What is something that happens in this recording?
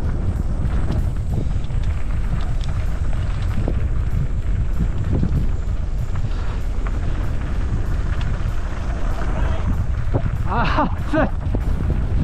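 Bike tyres crunch and rattle over loose gravel.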